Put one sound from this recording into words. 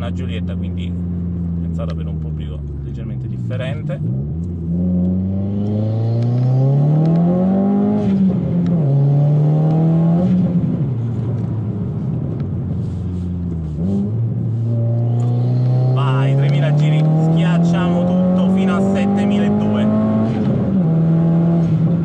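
A car engine revs up and down, heard from inside the car.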